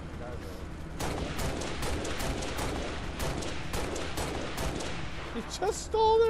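A dropship engine roars overhead.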